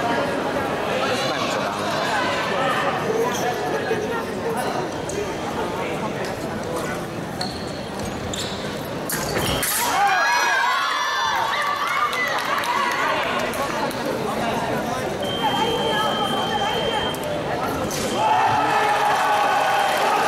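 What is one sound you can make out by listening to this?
Shoes squeak and tap on a hard floor.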